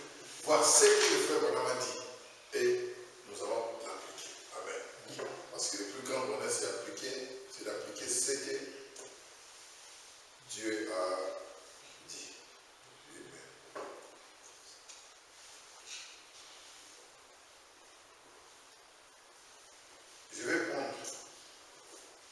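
A man speaks slowly and deliberately, with pauses, in a room with a slight echo.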